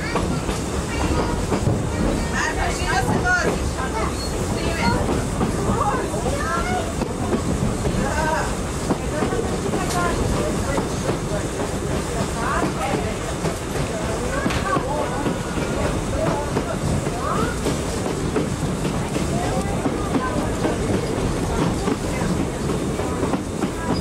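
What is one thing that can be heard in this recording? A train carriage rumbles and rattles steadily along the tracks.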